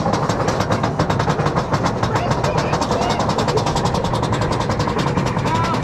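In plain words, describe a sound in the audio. Wind roars loudly past on a fast ride.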